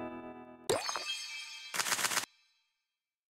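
A bright jingle of coins and chimes plays.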